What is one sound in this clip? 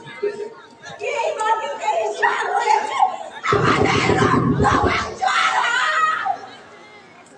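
A voice cries out with strong emotion.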